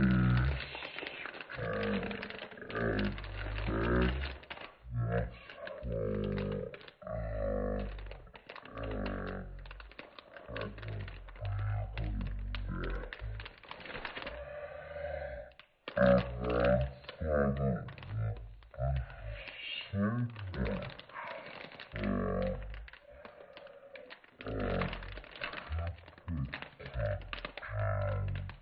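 Plastic wrap crinkles and rustles under hands.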